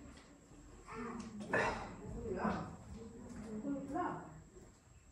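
An elderly man talks quietly farther off.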